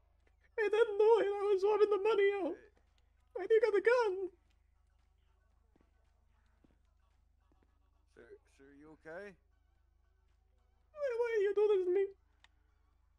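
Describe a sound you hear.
A man talks with animation in a high-pitched voice, heard through a microphone.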